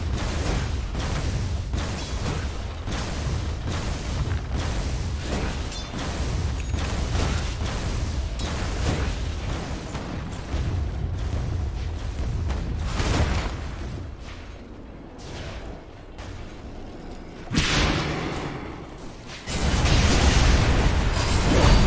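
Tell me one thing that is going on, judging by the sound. Weapons clash and spells burst in a fast video game battle.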